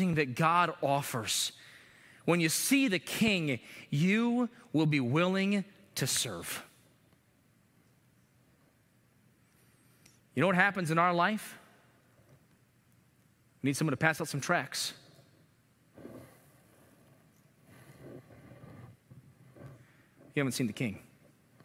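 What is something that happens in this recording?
A man speaks with animation through a microphone, with pauses, in a large echoing hall.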